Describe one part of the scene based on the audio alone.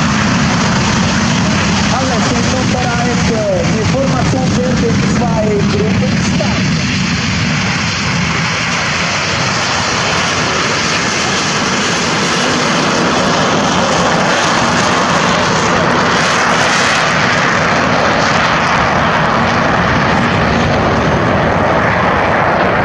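Jet engines roar loudly and steadily as aircraft take off and fly overhead.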